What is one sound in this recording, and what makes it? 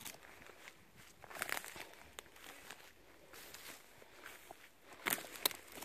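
Footsteps crunch on dry twigs and needles.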